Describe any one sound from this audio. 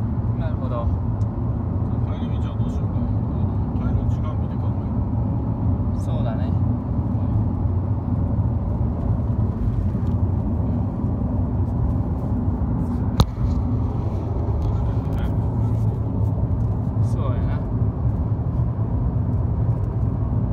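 A vehicle rumbles steadily at speed, heard from inside.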